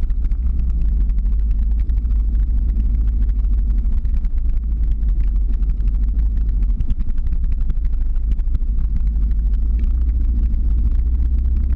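Skateboard wheels roll and rumble on asphalt.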